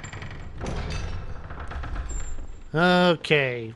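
Wooden double doors swing open with a creak.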